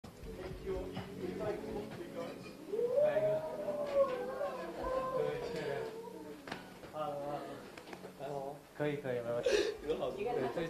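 Several men and women chatter and laugh nearby.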